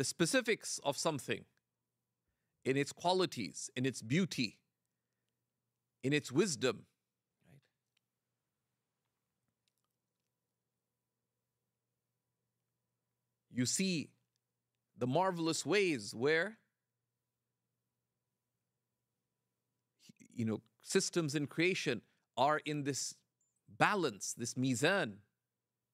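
A middle-aged man speaks calmly and with animation into a microphone, pausing often.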